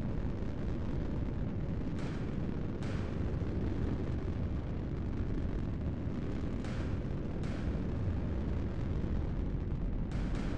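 A low engine rumble drones steadily.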